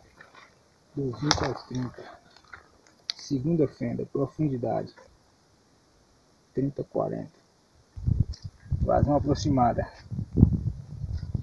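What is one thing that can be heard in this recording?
A man speaks calmly and close by, explaining.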